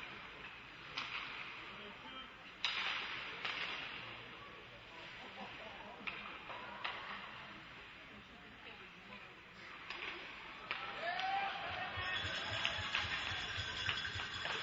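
Hockey sticks clack against a puck in a large echoing rink.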